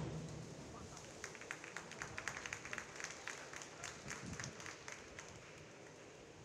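A crowd applauds and cheers.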